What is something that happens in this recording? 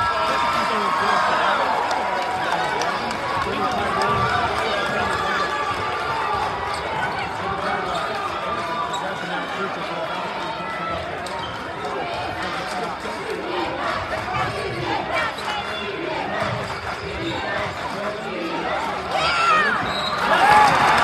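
A crowd chatters and calls out in a large echoing gym.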